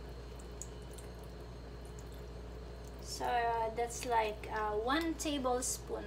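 Sauce glugs from a bottle into a pan.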